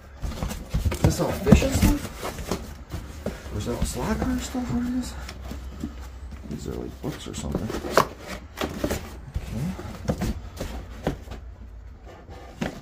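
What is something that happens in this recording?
Cardboard rustles and crinkles as hands rummage through a box.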